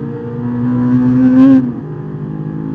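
A car engine roars loudly from inside the cabin, revving up and then dropping as the driver shifts gear.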